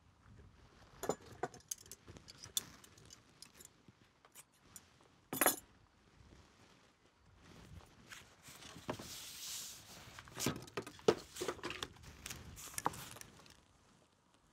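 Objects knock and rustle on a table.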